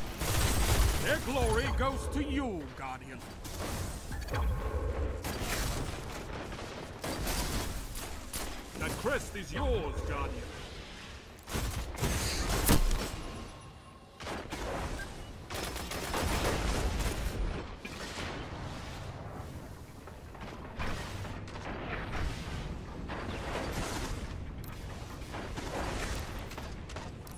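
Gunfire cracks in rapid bursts close by.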